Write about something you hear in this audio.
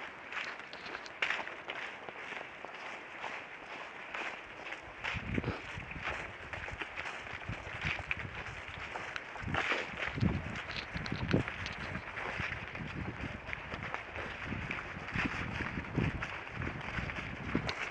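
Footsteps crunch through dry fallen leaves close by.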